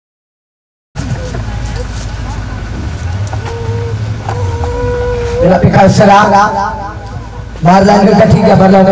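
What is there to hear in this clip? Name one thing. A group of women sings together.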